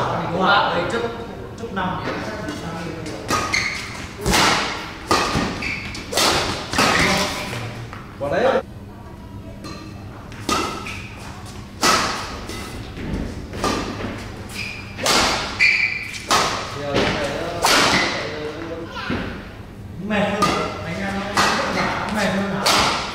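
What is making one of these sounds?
Rackets strike a shuttlecock back and forth with sharp pops.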